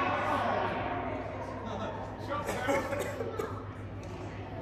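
A man talks close by in a large echoing hall.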